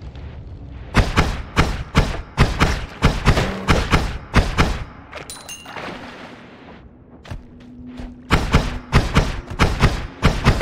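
A game weapon fires in rapid bursts.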